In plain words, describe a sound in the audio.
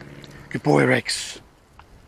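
A dog whines up close.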